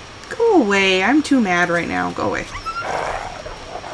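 A wolf snarls and growls close by.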